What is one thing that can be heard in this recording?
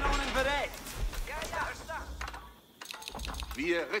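Weapons clash and arrows whistle in a battle.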